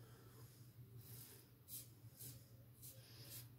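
A razor scrapes across stubble in short strokes.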